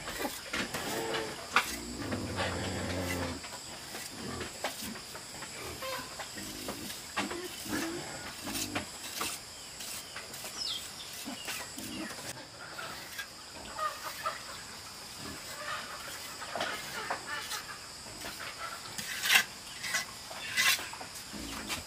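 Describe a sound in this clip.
A trowel scrapes and smooths wet cement on bricks.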